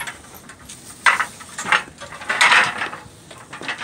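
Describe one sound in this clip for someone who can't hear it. Plastic sheeting rustles close by.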